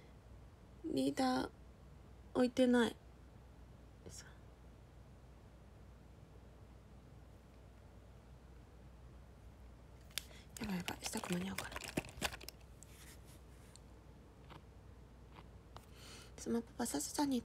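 A young woman speaks brightly and playfully close to a microphone, with pauses.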